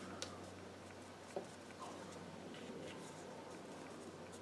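A brush dabs softly against paper.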